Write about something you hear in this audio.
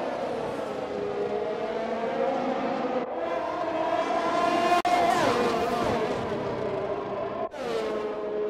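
Racing car engines whine at high revs.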